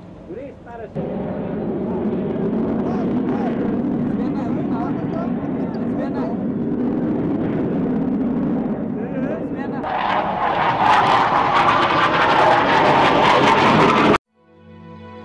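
Military jets roar as they fly overhead.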